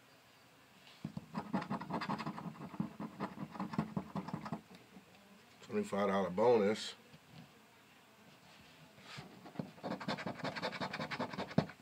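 A coin scratches rapidly across a card, with a dry rasping sound.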